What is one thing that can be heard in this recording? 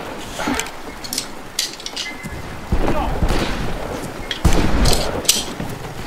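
A revolver's cylinder clicks as it is reloaded.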